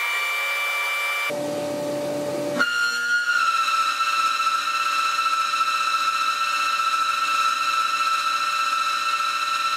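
Coolant hisses and splashes onto metal.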